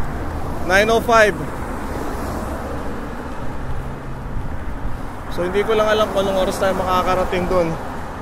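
Wind rumbles against the microphone while riding outdoors.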